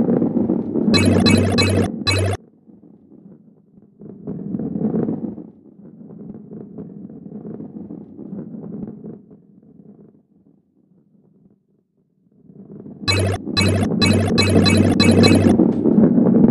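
Coins chime in quick bright bursts as they are collected.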